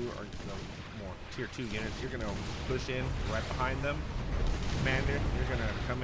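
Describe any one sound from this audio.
Explosions boom and crackle across a battlefield.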